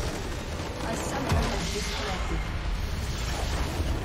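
A large structure explodes with a deep rumbling blast.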